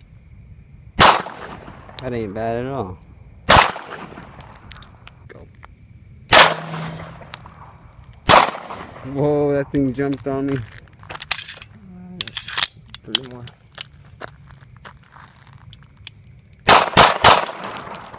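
A pistol fires loud single shots that echo outdoors.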